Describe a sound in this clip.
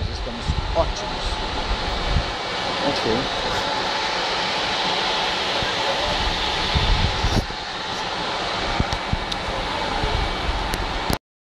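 A passenger train rolls slowly past with a steady rumble.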